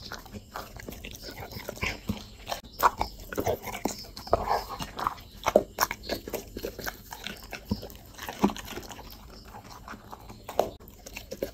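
A dog chews food with wet, crunchy smacking sounds close by.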